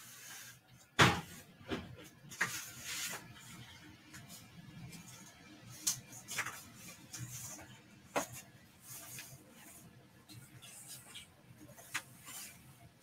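A large poster board rustles and taps as hands move it.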